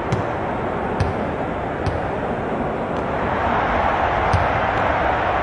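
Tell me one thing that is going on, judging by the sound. A basketball bounces on a hardwood floor a few times.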